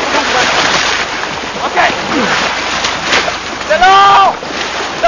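Water rushes and splashes loudly.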